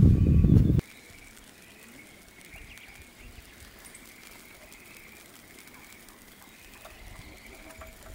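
Chopsticks tap and scrape against a frying pan.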